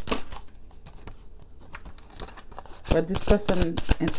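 A card slides onto a table.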